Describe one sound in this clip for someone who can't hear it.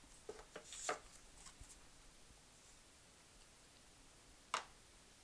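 Paper rustles and taps softly, close by.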